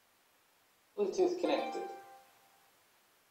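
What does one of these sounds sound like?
A small speaker plays a short, bright chime.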